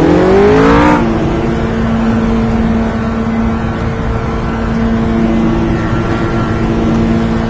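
A GT3 race car engine holds a steady drone at low speed.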